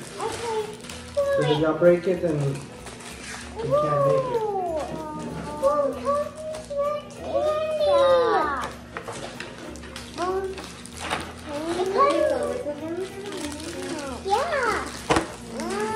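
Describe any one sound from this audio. Young girls talk and chatter with animation close by.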